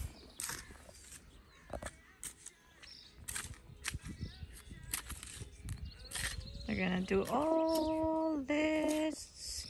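A hoe scrapes and chops through loose soil.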